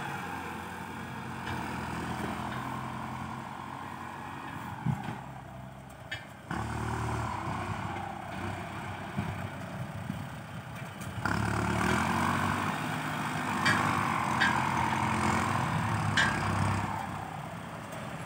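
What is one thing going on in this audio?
A disc plough scrapes through dry soil.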